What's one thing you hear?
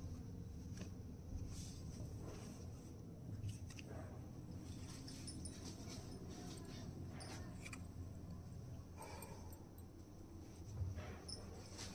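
Fabric rustles softly as hands handle it.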